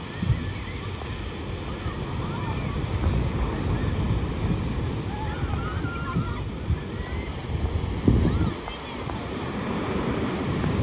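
Waves crash and roll onto the shore.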